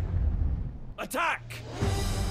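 A man shouts a command.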